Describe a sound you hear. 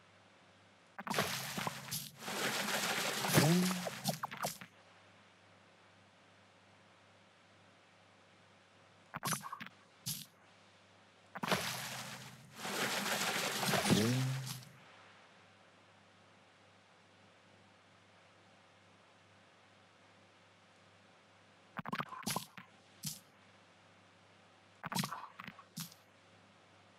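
A man speaks close to a microphone in short bursts, with long pauses between them.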